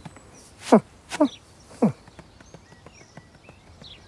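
A metal pot drops onto the grass.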